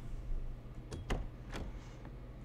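A door handle clicks as it turns.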